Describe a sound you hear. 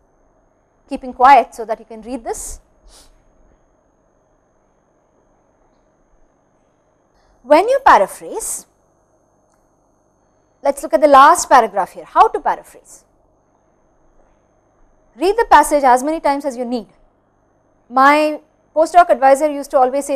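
A young woman speaks calmly into a close microphone, in short phrases with pauses.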